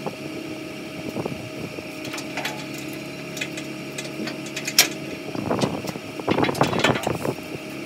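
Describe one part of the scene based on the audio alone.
Footsteps thud on a metal trailer deck.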